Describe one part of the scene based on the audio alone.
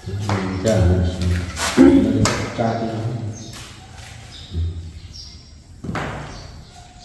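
A rubber mallet taps on a floor tile.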